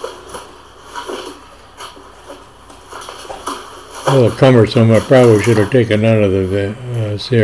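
Cardboard boxes rustle and scrape as they are moved.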